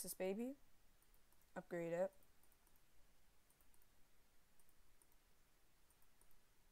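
Soft game menu clicks sound in short bursts.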